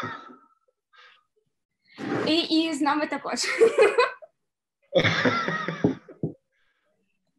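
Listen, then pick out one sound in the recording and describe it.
A second young woman laughs over an online call.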